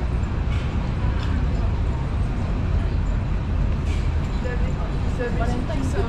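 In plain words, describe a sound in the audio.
Pedestrians chatter faintly nearby.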